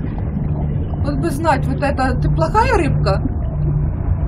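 A young woman speaks briefly and expressively close to a microphone.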